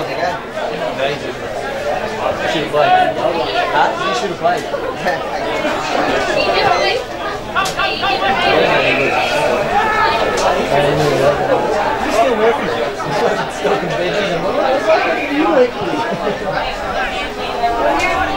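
Men shout and call to one another across an open field outdoors.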